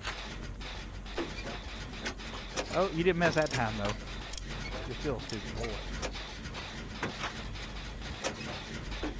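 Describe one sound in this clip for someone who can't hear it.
Metal parts click and clatter as an engine is worked on.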